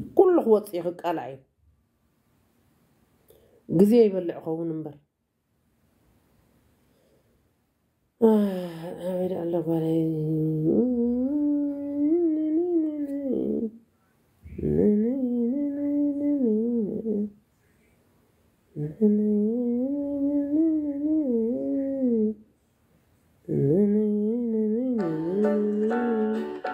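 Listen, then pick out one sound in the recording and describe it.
A woman sings slowly in long, held phrases.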